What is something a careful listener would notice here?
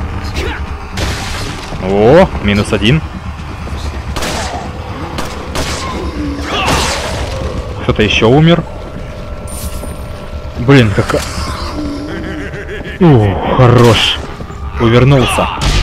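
A pistol fires sharp single shots in a room.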